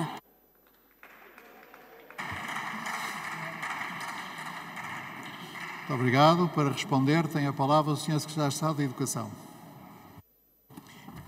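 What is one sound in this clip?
Many people murmur and talk in a large echoing hall.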